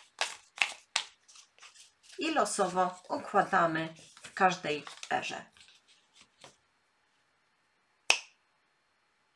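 Cardboard tiles click and tap against a tabletop.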